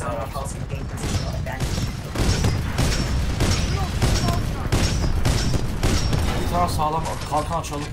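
A heavy cannon fires in rapid bursts.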